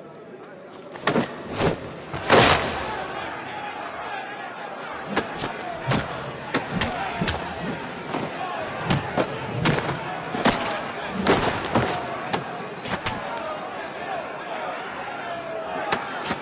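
Fists thud in a brawl.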